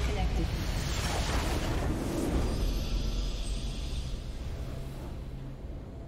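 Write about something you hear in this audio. A huge crystal shatters in a booming, rumbling blast that slowly fades.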